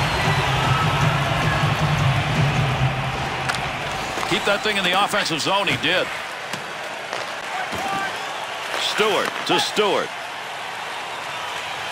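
A large crowd roars and cheers in an echoing arena.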